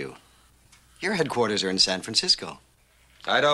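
A second middle-aged man answers in a firm, steady voice.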